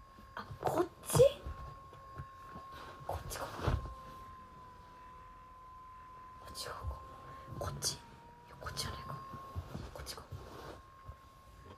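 A cushion thumps and rustles against a sofa.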